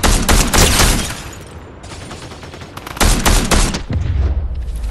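A rifle fires loud shots.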